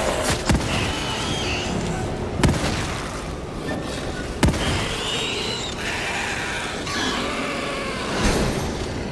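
A creature shrieks and screeches.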